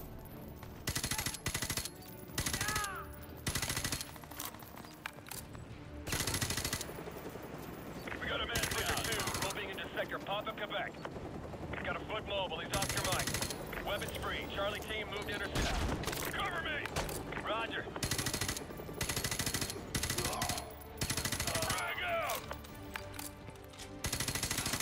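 Rifle gunfire rattles in loud bursts.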